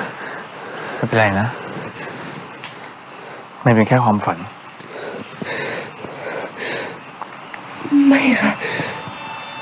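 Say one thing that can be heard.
A young woman whimpers and gasps in fear close by.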